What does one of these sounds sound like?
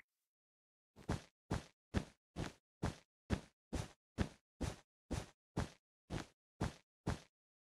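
Blocks are placed with quick, even thuds.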